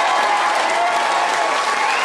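A group of men clap their hands outdoors.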